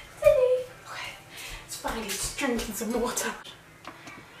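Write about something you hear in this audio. A young woman speaks with animation close by, her voice rising in excitement.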